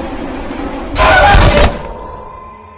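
A heavy wooden club strikes with a loud crash.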